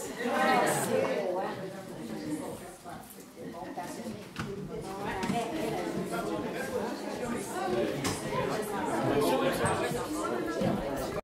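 A crowd of men and women chat and murmur close by in a room.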